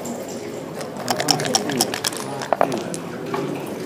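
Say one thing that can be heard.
Dice rattle and clatter onto a board.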